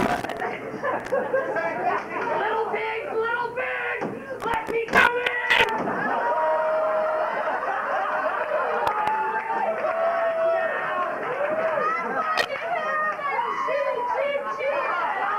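Young women talk and exclaim with animation, heard from a distance.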